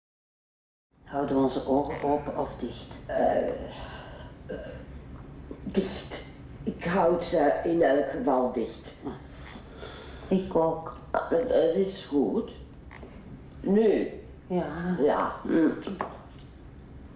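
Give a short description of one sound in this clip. An elderly woman speaks through a headset microphone in a large room.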